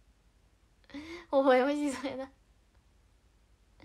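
A young woman laughs close to the microphone.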